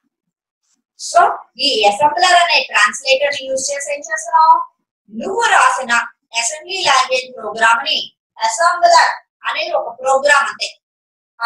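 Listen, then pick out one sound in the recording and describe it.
A middle-aged woman speaks clearly and with animation, close by.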